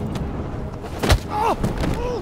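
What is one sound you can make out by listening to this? A heavy punch lands with a sharp thud.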